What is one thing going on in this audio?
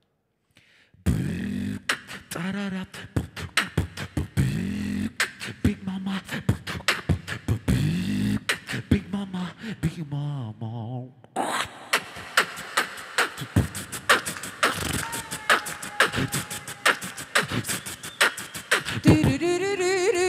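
A young man sings into a microphone through loudspeakers.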